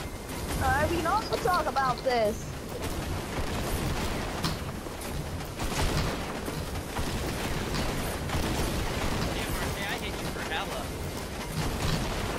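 Shotguns fire in loud, sharp blasts.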